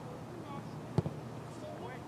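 A soccer ball is kicked with a thud.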